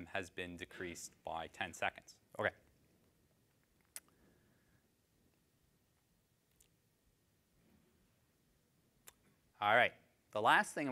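A man speaks calmly into a microphone in a large hall, with pauses between phrases.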